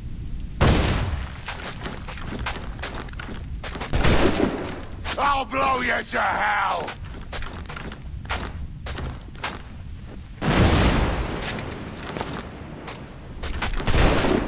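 Hands and feet scrape and thud against stone while climbing.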